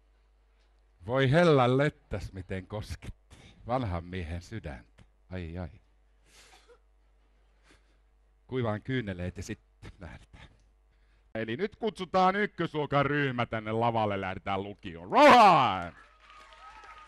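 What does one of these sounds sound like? A man speaks through a microphone in a large echoing hall, with pauses between phrases.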